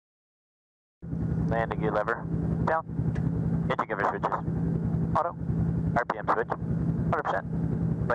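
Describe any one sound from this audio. A helicopter engine hums steadily.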